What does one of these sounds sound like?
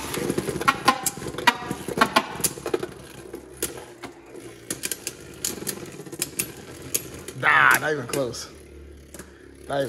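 Spinning tops whir and clatter, knocking sharply against each other and a plastic wall.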